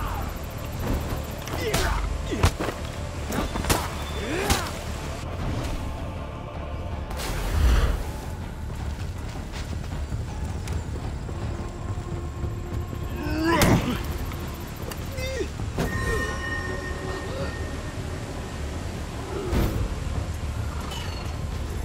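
A sword swishes and whooshes through the air.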